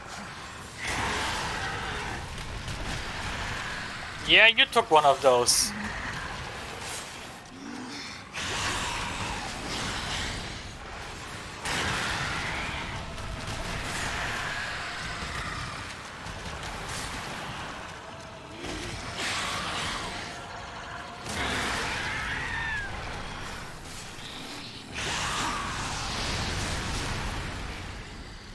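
Fiery explosions roar and boom.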